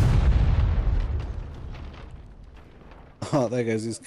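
A distant explosion rumbles and slowly fades.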